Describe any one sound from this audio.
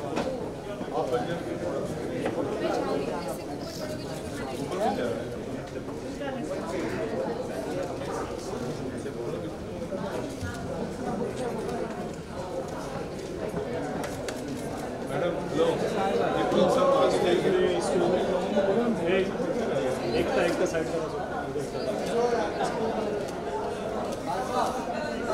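A crowd of men and women chatters in a large room.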